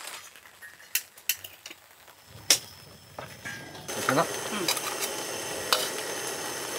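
Metal utensils clink against a pan.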